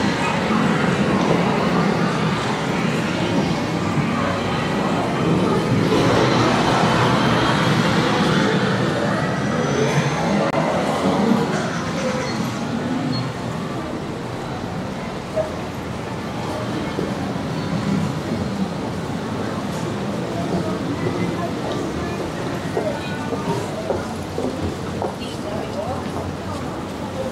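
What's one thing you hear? A busy crowd murmurs in the street, louder at first and quieter later.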